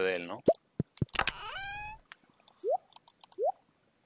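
A game menu opens with a short chime.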